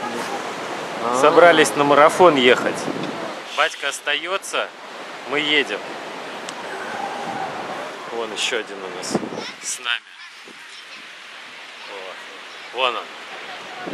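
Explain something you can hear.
A young man talks close to the microphone outdoors.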